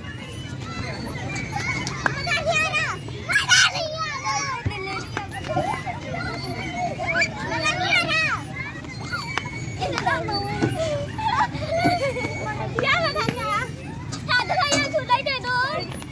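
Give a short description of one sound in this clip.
A metal merry-go-round creaks as it spins.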